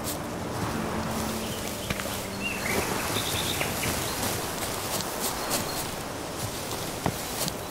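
Leafy bushes rustle as a person pushes through them.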